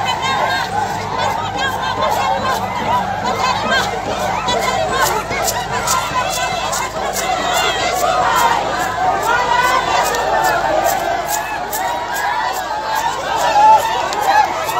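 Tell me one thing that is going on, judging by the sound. A large crowd of men and women shouts and chants excitedly outdoors.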